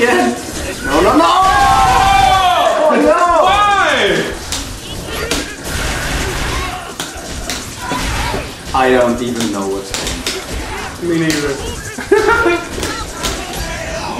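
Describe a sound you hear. Young men shout and cheer with excitement.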